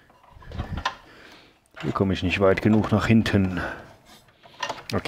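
Hands pull wires, which rustle and click against metal.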